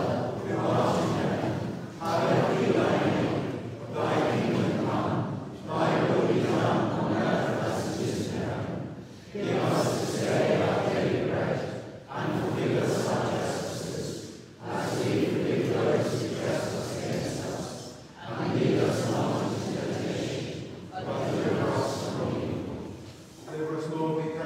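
A man speaks steadily into a microphone, echoing in a large hall.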